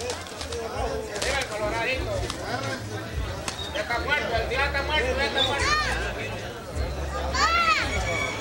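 Roosters flap and beat their wings as they fight.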